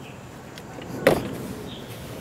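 A metal lid stay clicks sharply against wood.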